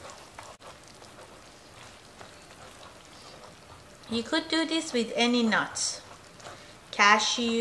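Oil sizzles and bubbles in a hot pan.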